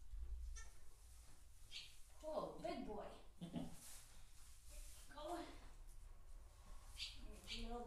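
Straw rustles as a newborn goat kid is handled.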